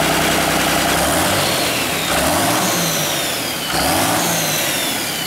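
A diesel engine revs up and down several times.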